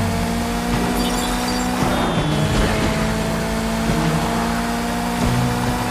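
A car engine roars steadily as the car speeds along.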